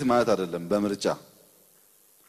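A man speaks loudly into a microphone, heard through loudspeakers in a large hall.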